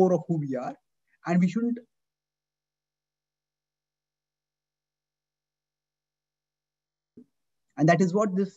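A man speaks calmly through a microphone on an online call, with long pauses.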